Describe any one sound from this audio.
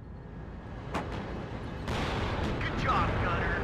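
Tank cannons fire with loud booming blasts.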